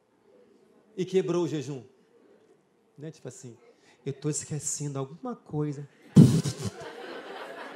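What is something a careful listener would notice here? A man speaks with animation through a microphone in a reverberant hall.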